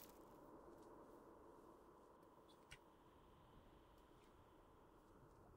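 Footsteps patter softly on stone.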